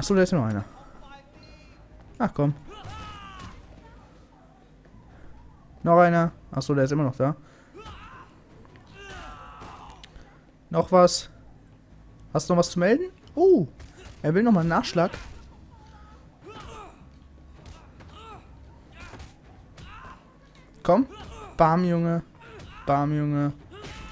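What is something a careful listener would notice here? Punches thud in quick blows.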